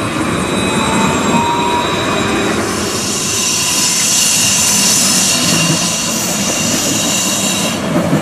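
A tram rolls past along the tracks, whirring and humming.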